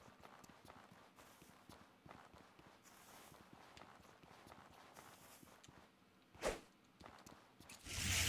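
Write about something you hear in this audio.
Footsteps crunch on gravel at a quick, steady pace.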